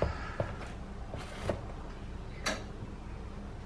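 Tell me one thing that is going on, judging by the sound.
A plastic lid knocks and clicks against a jar.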